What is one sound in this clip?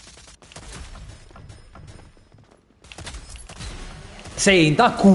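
Rapid gunshots crack from a video game.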